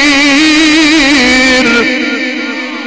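A man chants loudly through a microphone, and the chant rings on in a large echoing hall.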